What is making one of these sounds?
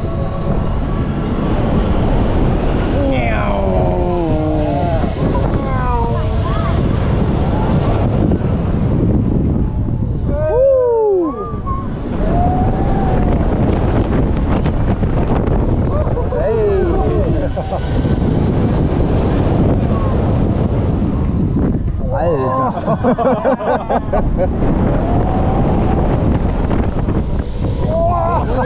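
Wind roars loudly past outdoors, rising and falling.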